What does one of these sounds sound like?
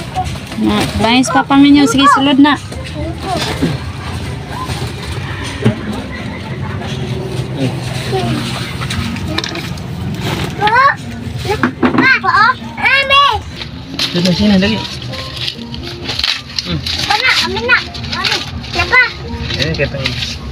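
Young children talk and shout excitedly close by.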